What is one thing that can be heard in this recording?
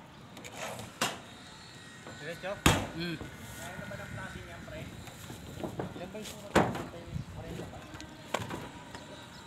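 Knocks thump on a metal roof.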